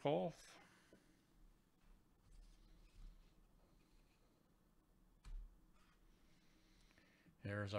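A card slides against plastic as it is pulled from a holder.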